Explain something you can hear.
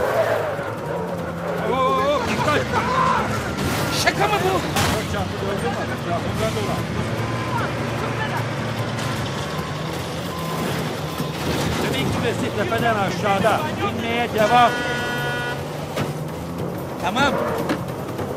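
A jeep engine rumbles steadily as the vehicle drives.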